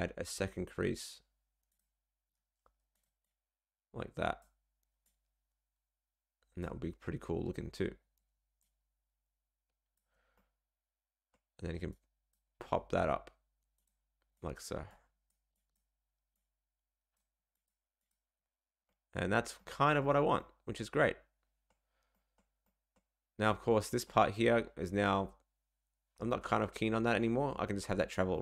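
A man talks into a close microphone in short, calm bursts.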